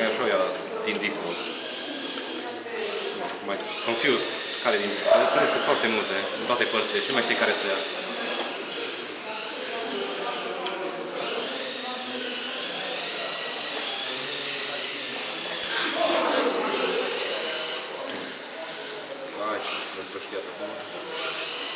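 A small robot vacuum whirs steadily as it drives across a hard floor.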